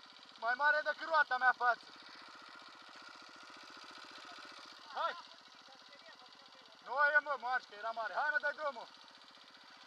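A dirt bike engine revs in short, sharp bursts close by.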